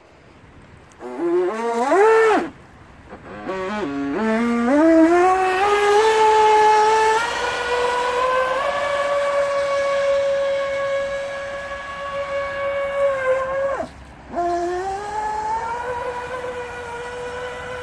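A toy boat's small motor whines in bursts, then rises in pitch and holds a steady high whine.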